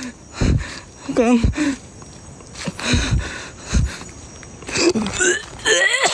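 Footsteps crunch on a leafy dirt path.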